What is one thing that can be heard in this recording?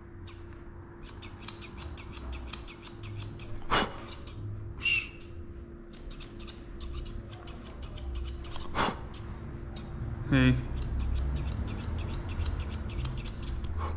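Scissors snip rapidly, close by.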